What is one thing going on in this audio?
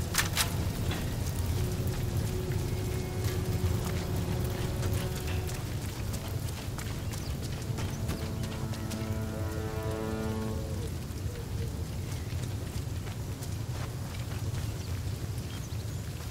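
Footsteps run over wet, muddy ground.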